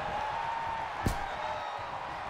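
A heavy blow thuds in a wrestling ring.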